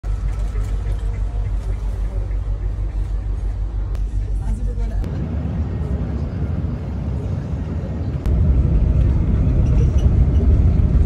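Tyres roar on the road as the bus drives along.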